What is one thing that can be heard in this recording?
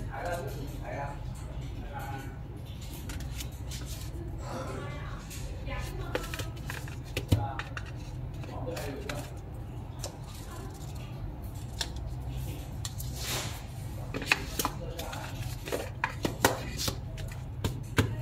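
A cardboard box rubs and scrapes as hands handle it.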